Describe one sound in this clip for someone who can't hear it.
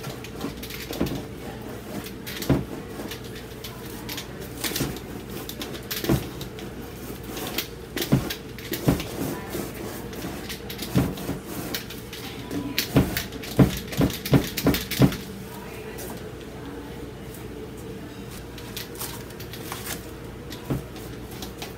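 A brush dabs and taps against a canvas.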